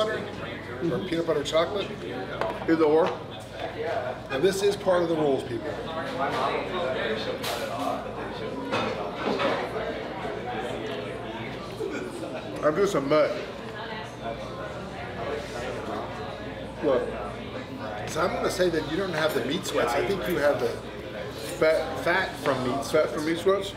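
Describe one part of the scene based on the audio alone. A second man talks and answers close by.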